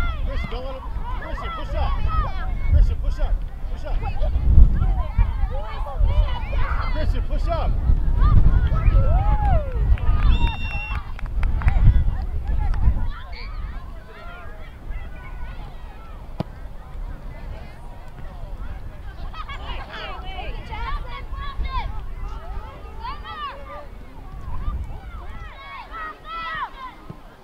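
Spectators shout and call out across an open field.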